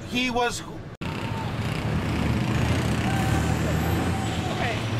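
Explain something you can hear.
Traffic rolls past on a busy street outdoors.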